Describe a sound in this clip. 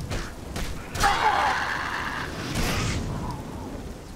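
A fire spell bursts with a loud whoosh.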